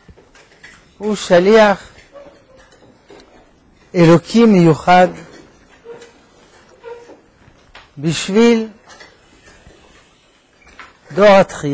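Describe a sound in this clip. An elderly man speaks slowly through a microphone, in short bursts with long pauses.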